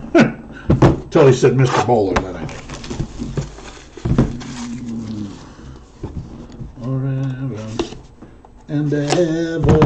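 A plastic game case clatters as it is handled.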